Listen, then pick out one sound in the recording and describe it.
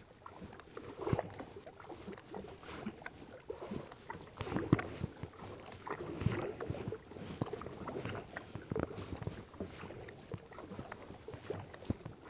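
Water ripples against the hull of a kayak.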